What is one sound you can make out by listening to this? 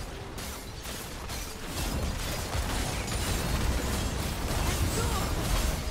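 Magic blasts and sword strikes crackle and boom in a hectic video game battle.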